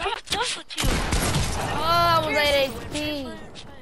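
Video game gunshots crack in quick bursts.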